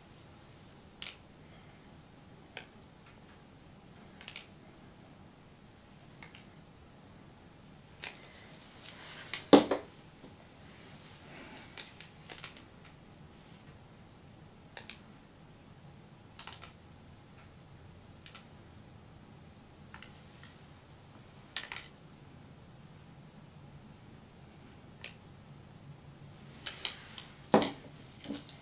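A wooden stick taps and scrapes against a small plastic cup of paint.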